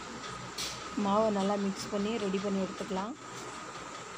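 A woman speaks nearby in a lively voice.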